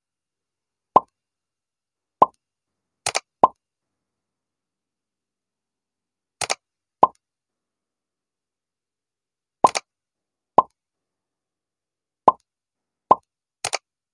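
Short soft clicks pop now and then as pins snap into place.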